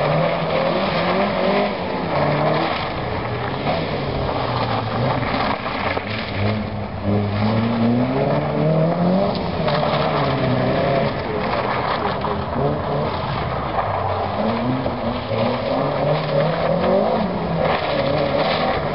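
A van engine revs loudly, rising and falling as it speeds around.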